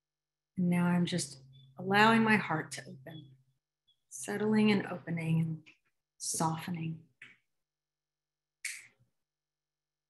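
A woman speaks slowly and calmly into a microphone, as over an online call.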